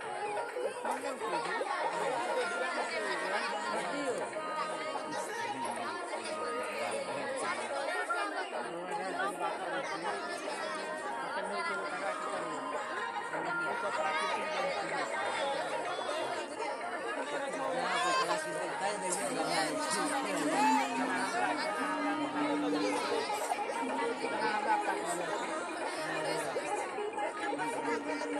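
A group of men talk and murmur close by.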